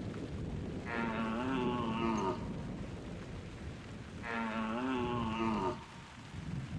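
A hunting call is blown in long, wavering bleats.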